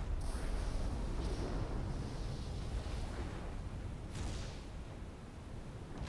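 Thunder cracks and booms.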